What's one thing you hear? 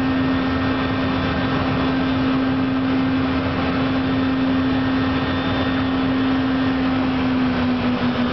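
Aircraft engines drone loudly and steadily, with a constant hum.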